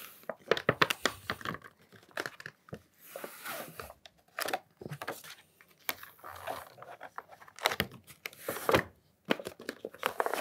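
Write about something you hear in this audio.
A thin flexible sheet crinkles and flexes as it is peeled off a metal plate.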